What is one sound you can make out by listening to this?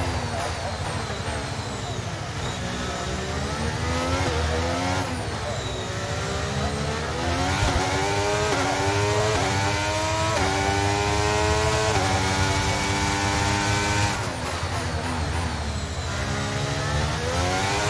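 A racing car engine whines loudly, rising in pitch through each gear and dropping sharply at each gear change.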